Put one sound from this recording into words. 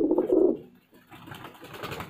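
Wings flap briefly.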